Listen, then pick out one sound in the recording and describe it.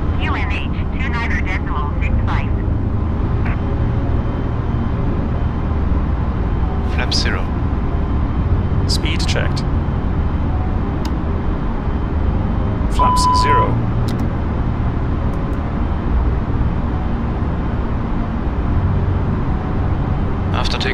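A jet engine drones steadily with a low rumble.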